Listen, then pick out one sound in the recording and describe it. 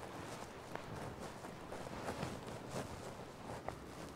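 Footsteps crunch on snowy ground.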